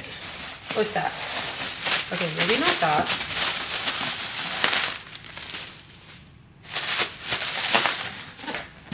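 Plastic packaging crinkles and rustles.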